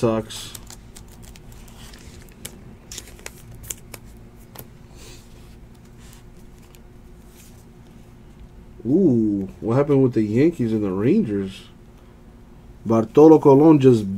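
Trading cards slide and rustle against each other as they are flipped through by hand.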